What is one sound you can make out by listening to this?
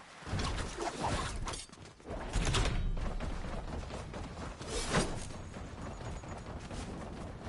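Footsteps of a game character run quickly over grass and road.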